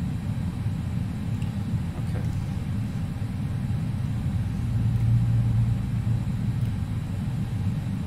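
Jet engines hum with a low, steady rumble, swelling briefly in the middle.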